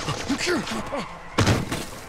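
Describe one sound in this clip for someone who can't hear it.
A large ape screeches and howls.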